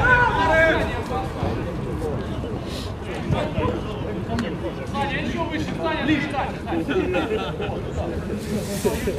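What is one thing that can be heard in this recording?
Men shout and call out to each other outdoors.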